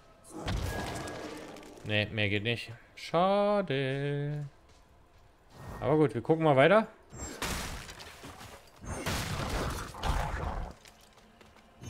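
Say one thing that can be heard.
Blades slash and thud in a close fight.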